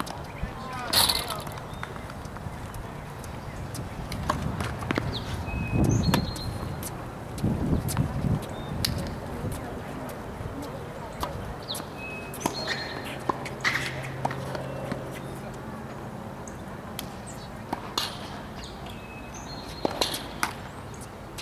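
Tennis balls are struck with rackets.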